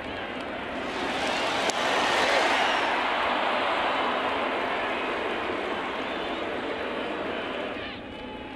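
A large crowd cheers and roars, then slowly settles.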